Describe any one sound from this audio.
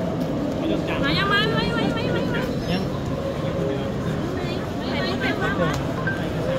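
A child's high voice chatters excitedly close by.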